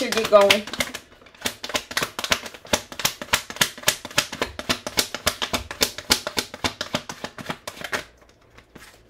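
Playing cards riffle and flutter quickly as they are shuffled by hand.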